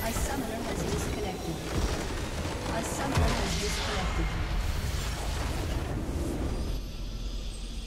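Game spell effects crackle and boom loudly, ending in a big explosion.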